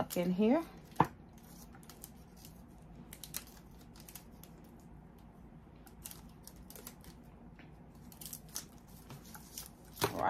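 Small plastic items click and rustle in hands.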